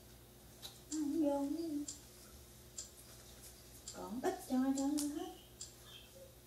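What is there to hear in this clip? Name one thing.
A woman speaks briefly and calmly nearby.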